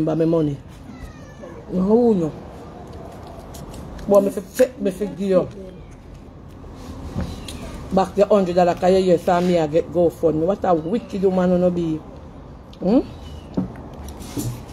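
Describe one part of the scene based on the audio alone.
A woman talks with animation close to a phone microphone.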